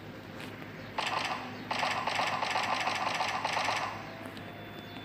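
A pistol fires a rapid series of shots.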